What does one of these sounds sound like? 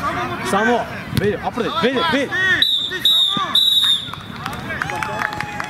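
Young boys shout across an open field.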